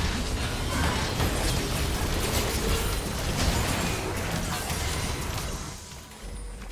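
Spell effects crackle and burst rapidly in a fierce battle.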